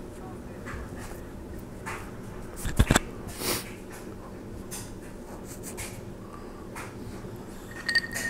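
A cloth rubs across a man's mouth.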